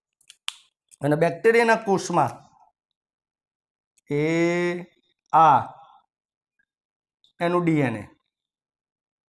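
A man explains in a loud, clear voice, close to a microphone, with pauses.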